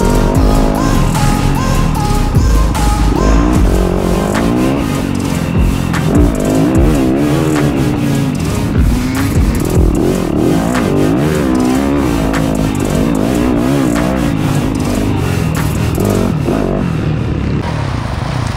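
A dirt bike engine revs and roars up close.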